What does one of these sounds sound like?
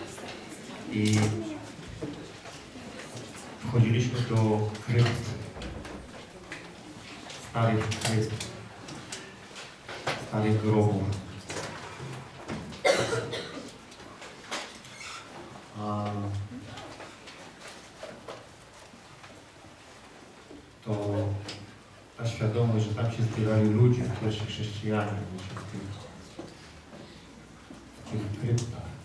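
A man speaks calmly and slowly through a microphone, with pauses, in a room with a slight echo.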